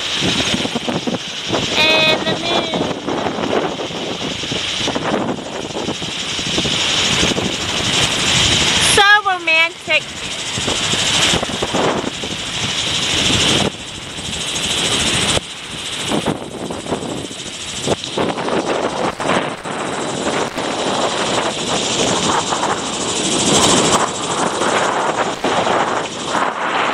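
Waves wash and churn steadily on open water.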